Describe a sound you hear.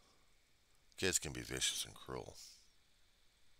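A man speaks briefly and calmly into a headset microphone, close by.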